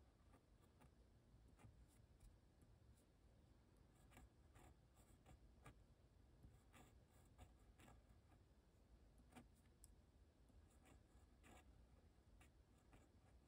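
A pen scratches softly across paper in short strokes.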